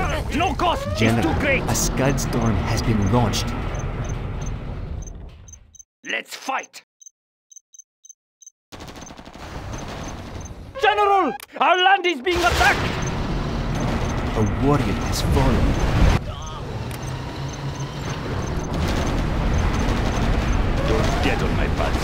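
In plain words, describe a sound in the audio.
Gunfire crackles and explosions rumble in a battle.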